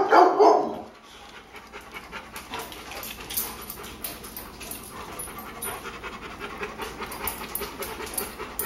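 Dogs' claws click and tap on a hard floor.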